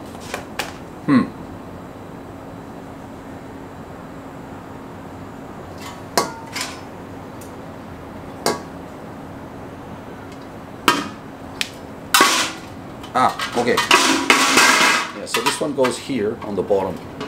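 A hard plastic lid clicks and knocks as it is handled.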